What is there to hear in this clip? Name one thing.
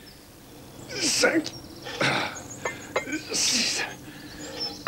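Metal parts clank and rattle.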